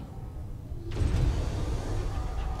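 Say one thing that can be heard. A spaceship engine rumbles deeply.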